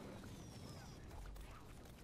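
A burst of flame roars.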